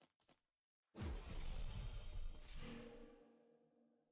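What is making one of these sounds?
A magical burst whooshes and fades.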